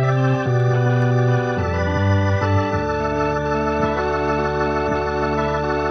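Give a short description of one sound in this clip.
An organ plays slow, sustained chords that shift in pitch.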